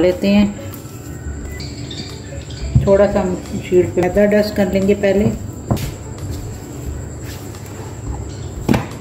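Hands squish and knead soft dough.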